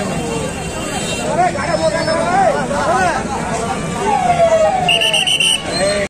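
A crowd of men talks and shouts loudly outdoors.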